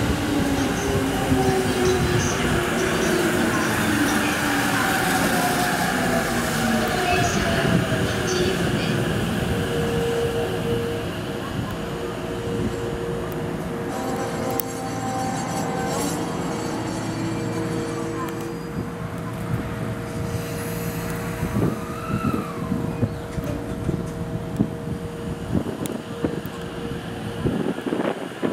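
An electric train pulls slowly out of the station, its motor whining as it gathers speed.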